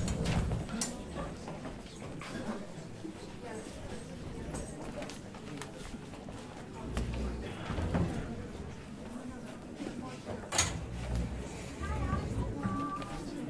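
Footsteps thud on a wooden stage.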